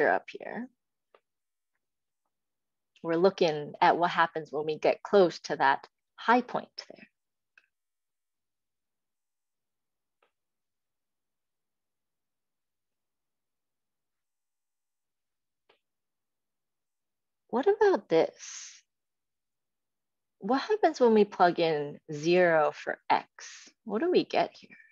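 A young woman speaks calmly over an online call, explaining at a steady pace with pauses.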